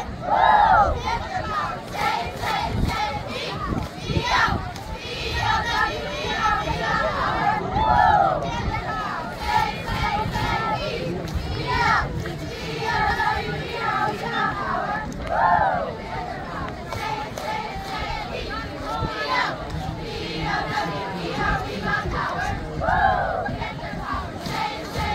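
Girls clap their hands in rhythm.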